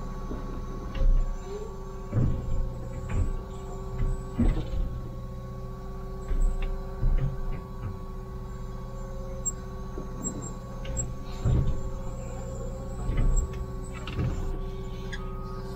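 A steel bucket knocks and scrapes against the ground.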